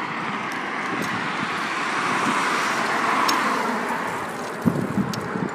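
A car drives by close and fades away.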